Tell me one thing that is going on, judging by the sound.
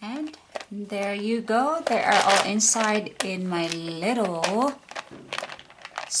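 Small plastic pieces rattle inside a box.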